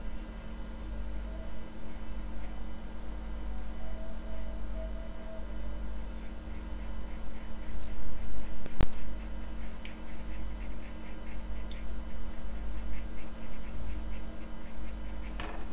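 A paintbrush brushes softly across paper.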